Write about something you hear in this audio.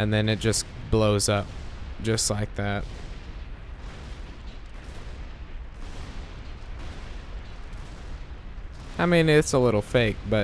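An explosion roars and crackles.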